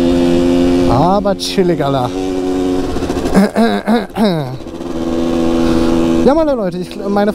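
A motorcycle engine revs sharply up and down several times.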